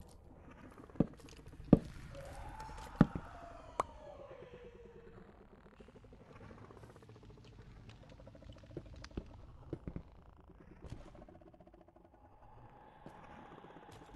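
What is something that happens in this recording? Stone blocks crunch and thud as they are dug and placed in a game.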